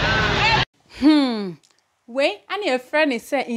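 A young woman speaks cheerfully into a microphone.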